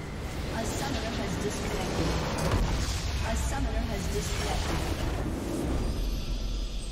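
A large structure explodes with a deep rumbling blast.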